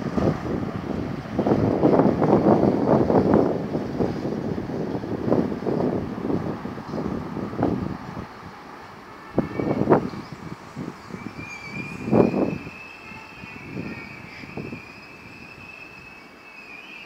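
A train rumbles along the tracks, loud at first and then fading.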